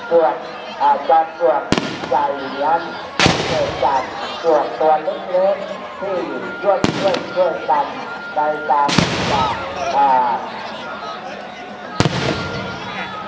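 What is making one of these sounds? Young women chatter and talk nearby outdoors.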